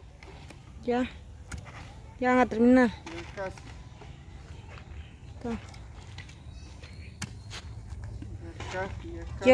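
A wooden stick thuds into soft soil.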